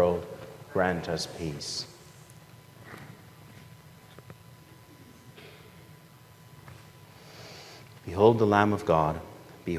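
A man chants aloud through a microphone in a reverberant hall.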